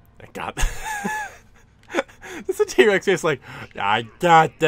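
A man speaks with an exaggerated, gravelly cartoon voice.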